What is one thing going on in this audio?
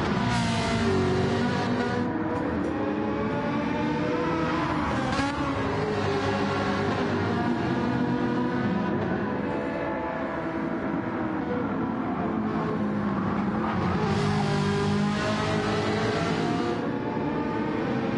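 Racing car engines roar and whine, rising and falling in pitch as the cars shift gears.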